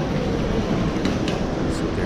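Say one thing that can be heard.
A wheeled suitcase rolls along a hard floor.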